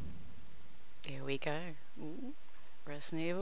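A young woman makes playful, sing-song vocal sounds close to a microphone.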